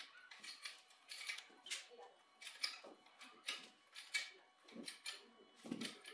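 A hydraulic jack creaks as its handle is pumped.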